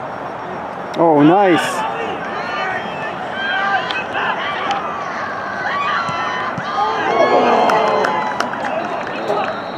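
A crowd of spectators cheers loudly.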